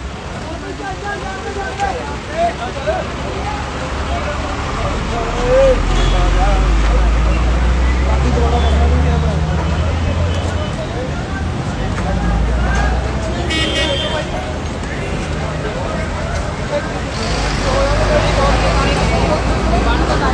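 A crowd of men talks and shouts loudly nearby, outdoors.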